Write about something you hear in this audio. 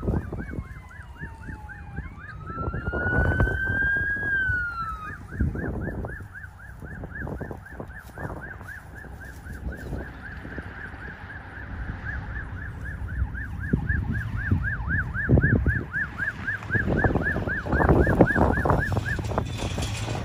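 A siren yelps rapidly in the distance.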